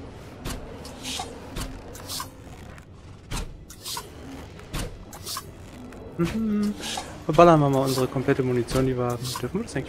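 A bowstring creaks and twangs as arrows are shot.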